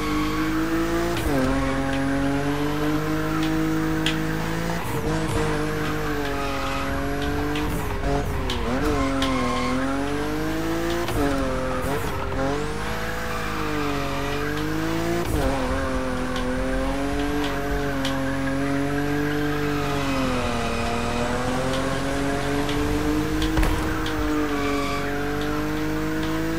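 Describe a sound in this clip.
A car engine roars and revs up and down.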